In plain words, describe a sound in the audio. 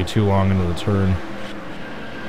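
A man talks into a microphone.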